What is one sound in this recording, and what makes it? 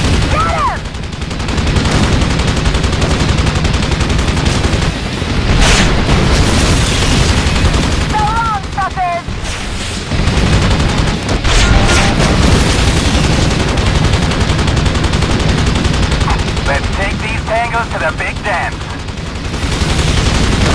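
A helicopter's rotor throbs steadily.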